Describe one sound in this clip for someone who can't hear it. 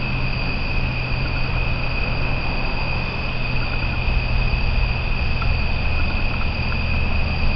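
Leaves rustle as a small animal moves through the undergrowth.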